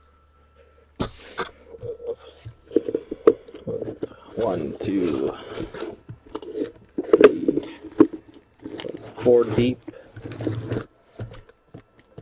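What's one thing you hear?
Cardboard boxes scrape and rustle as they are slid out of a carton.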